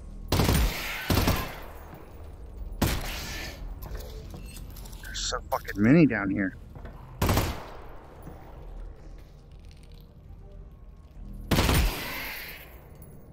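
A pistol fires sharp, loud shots with a short echo.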